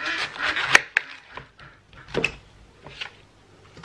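A knife chops through cabbage on a cutting board.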